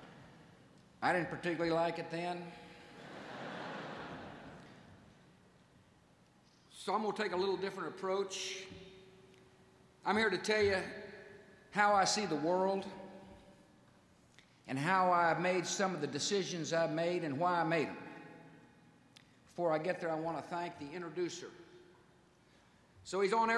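A middle-aged man gives a speech through a microphone, speaking firmly with pauses.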